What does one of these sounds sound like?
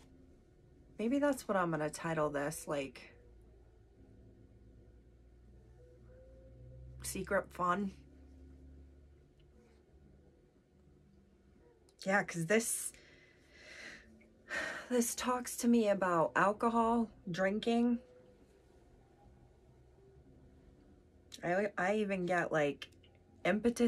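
A woman talks calmly and close to a microphone, pausing between phrases.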